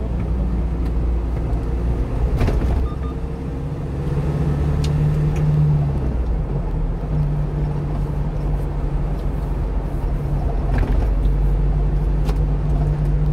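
A car engine hums steadily from inside the car while driving.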